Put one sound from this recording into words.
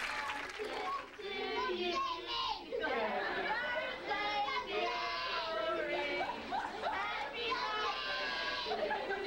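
A small boy shouts and chatters loudly.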